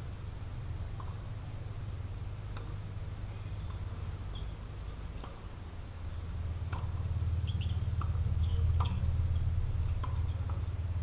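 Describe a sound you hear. Tennis rackets hit a ball back and forth some way off.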